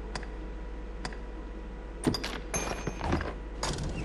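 Menu clicks sound in quick succession.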